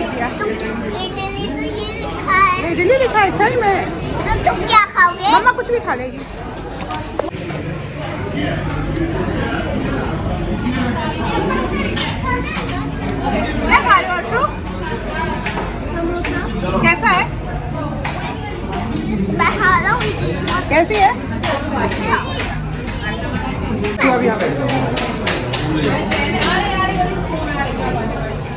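A murmur of many voices fills a busy room.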